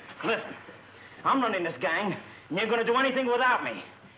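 A young man speaks angrily up close.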